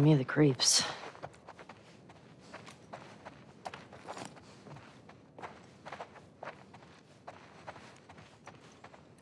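Footsteps fall slowly on a wooden floor.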